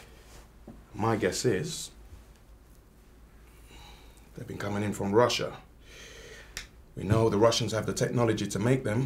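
Adult men speak calmly, close by.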